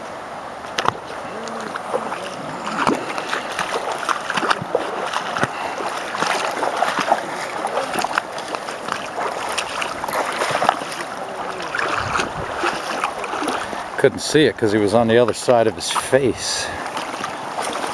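A shallow river rushes steadily over rocks.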